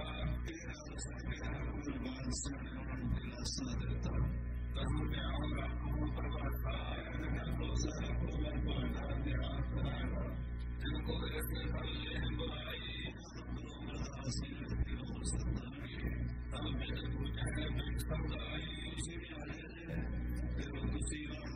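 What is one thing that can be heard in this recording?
An elderly man speaks steadily and calmly, heard through a microphone.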